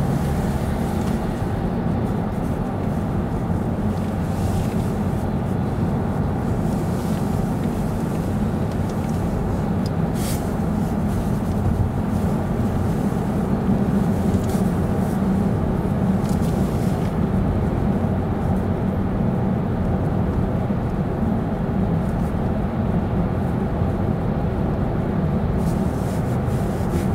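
A car engine hums steadily with a low road rumble inside a tunnel.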